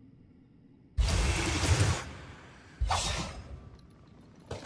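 A magical energy blast bursts with a deep rumbling whoosh.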